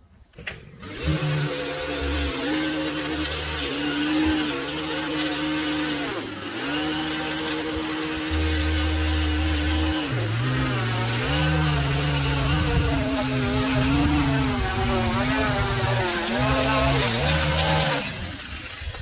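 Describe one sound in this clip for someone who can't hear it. A small petrol engine drones loudly and changes pitch as it cuts.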